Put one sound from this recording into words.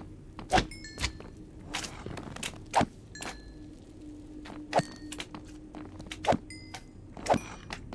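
Fire crackles softly.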